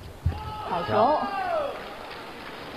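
A young man shouts loudly in a large echoing hall.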